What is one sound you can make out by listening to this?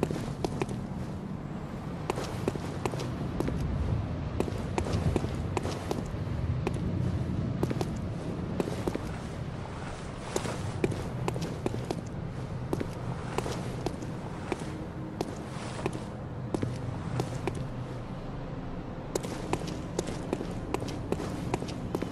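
Footsteps clack on stone at a steady walking pace.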